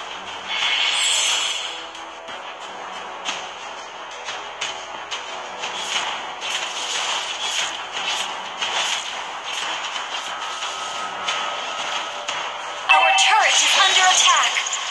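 Rapid weapon swipes whoosh and strike in quick, sharp bursts.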